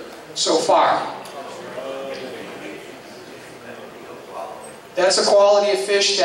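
A middle-aged man speaks into a microphone over loudspeakers in a large echoing hall.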